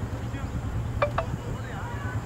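A cricket bat strikes a ball with a sharp crack in the distance.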